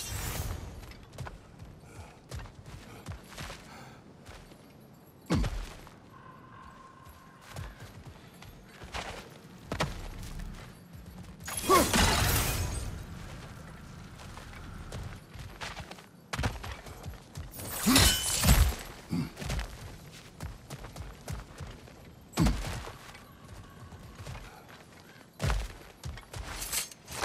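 Heavy footsteps crunch on gravel and stone.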